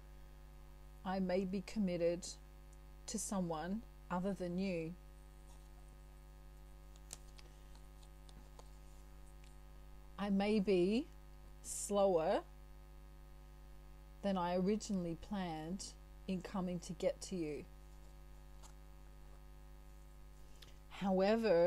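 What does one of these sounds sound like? A middle-aged woman speaks calmly and closely into a microphone, in short phrases with pauses.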